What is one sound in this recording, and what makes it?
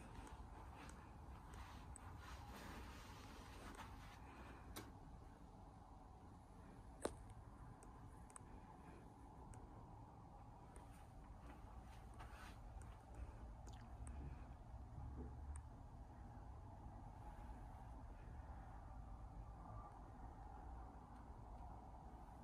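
City traffic hums faintly far below, muffled by a closed window.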